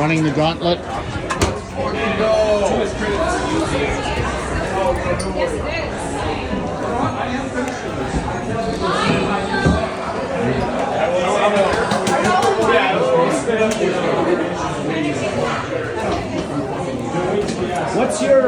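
A crowd of men and women chatter loudly all around in a busy room.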